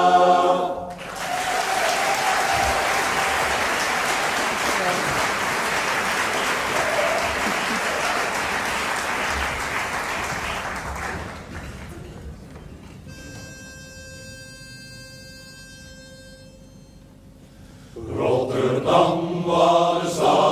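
A men's choir sings in a large hall.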